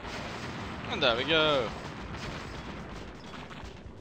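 Explosions boom as buildings burst into flames.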